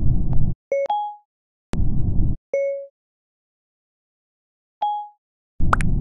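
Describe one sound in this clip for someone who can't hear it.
A phone gives short chiming beeps as voice typing starts and stops.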